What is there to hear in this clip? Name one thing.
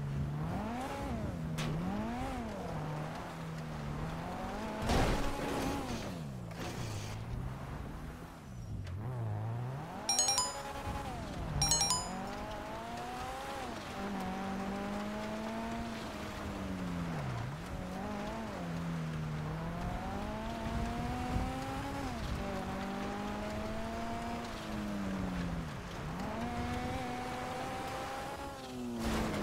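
A car engine revs up and down steadily.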